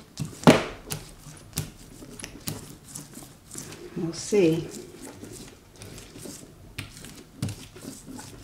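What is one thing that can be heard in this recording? A rubber roller rolls across paper with soft scraping and taps.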